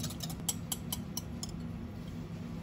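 A wire whisk clinks quickly against a glass bowl.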